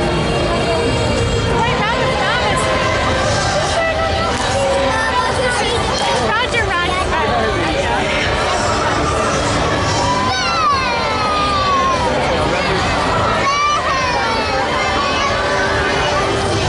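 Upbeat music plays loudly over loudspeakers outdoors.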